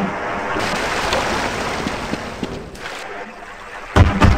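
Water splashes and gurgles as a body plunges under.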